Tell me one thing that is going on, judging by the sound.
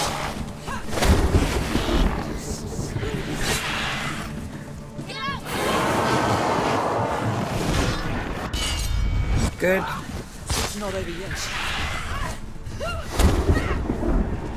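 Heavy blows land with deep thuds.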